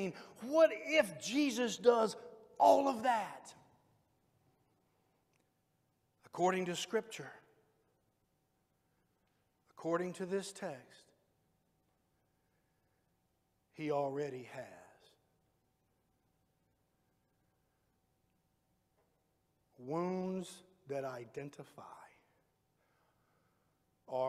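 A middle-aged man preaches through a microphone with animation, in short phrases with long pauses.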